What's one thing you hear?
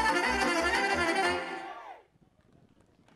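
Lively folk music with a thumping beat plays loudly over loudspeakers outdoors, then fades out.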